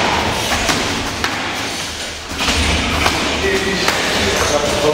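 A kick thuds sharply against a padded shin guard.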